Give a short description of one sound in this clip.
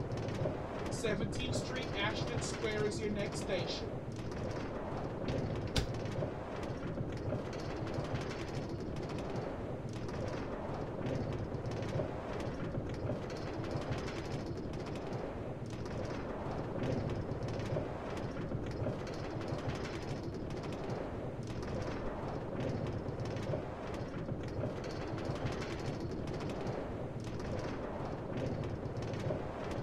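A cart rumbles steadily along metal rails.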